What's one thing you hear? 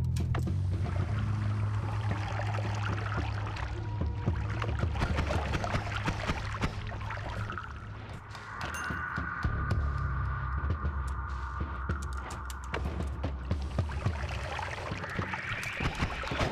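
Deep droning music plays in a video game.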